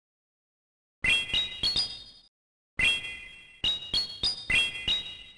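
Bright chiming tones ring out in quick rising steps.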